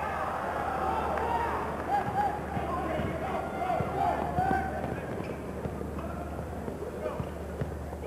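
A basketball thuds as it bounces on the floor.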